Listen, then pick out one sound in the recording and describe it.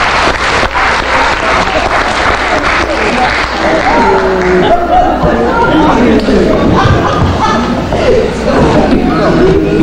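A murmur of many elderly people chatting fills a large echoing hall.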